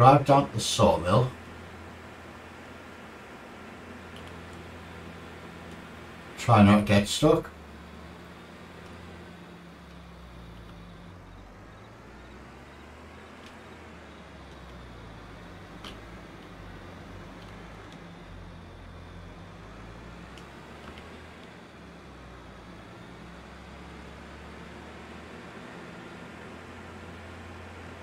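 A heavy machine's diesel engine hums steadily.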